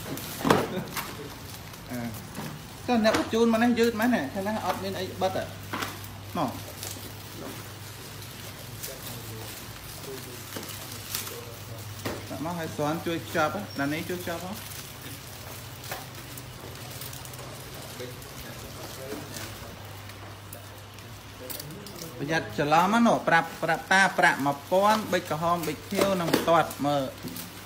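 Paper and plastic packets rustle as they are sorted.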